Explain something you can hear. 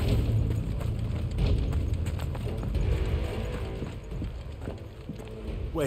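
Footsteps crunch on gravel.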